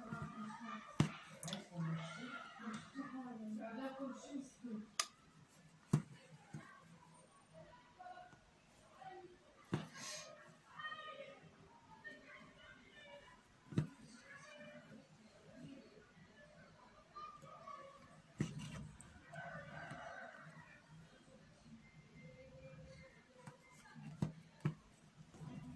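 Fingers tap and brush against fabric.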